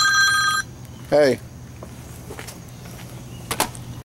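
Footsteps scuff on a hard path.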